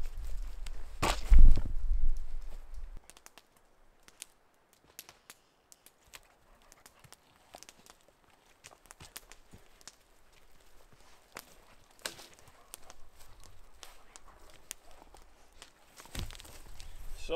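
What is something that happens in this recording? Dry branches snap and crack.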